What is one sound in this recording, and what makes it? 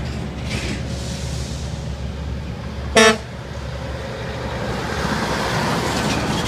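A truck engine rumbles as the truck approaches and passes close by.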